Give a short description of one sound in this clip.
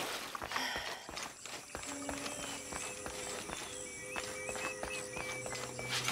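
Footsteps tap on a stone path at a steady pace.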